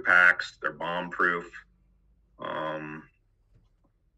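A middle-aged man speaks with animation over an online call.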